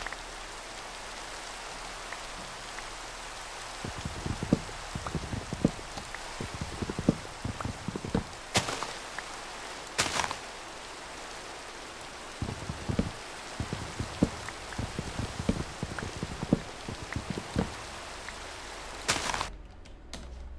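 Rain falls steadily with a soft hiss.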